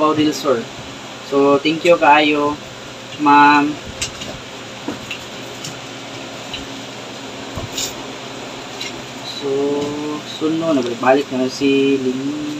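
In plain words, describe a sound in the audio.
A young man talks calmly close to a microphone.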